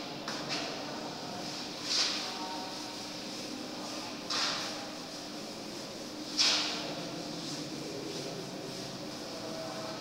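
A duster rubs across a chalkboard.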